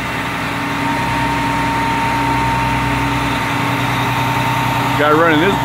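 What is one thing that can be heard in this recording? A heavy diesel truck engine idles steadily nearby.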